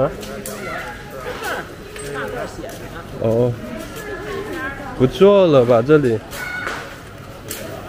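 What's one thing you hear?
A woman talks on a phone nearby, outdoors on a street.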